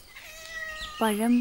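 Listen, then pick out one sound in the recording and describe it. A woman calls out loudly nearby.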